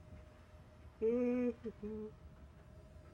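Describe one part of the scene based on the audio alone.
An electronic keypad beeps twice.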